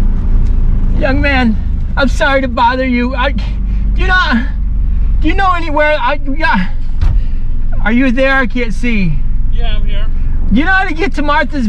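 A man talks with animation inside a car.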